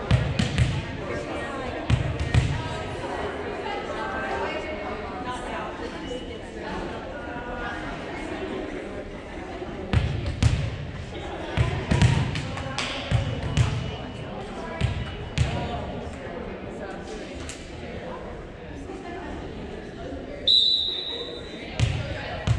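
Young players call out and chatter in a large echoing gym.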